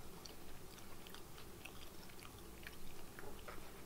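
Crispy food crunches and crackles as it is handled.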